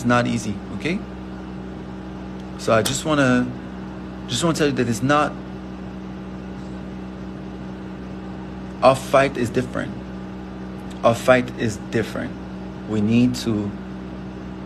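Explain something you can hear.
A young man talks calmly in short bursts, close to the microphone.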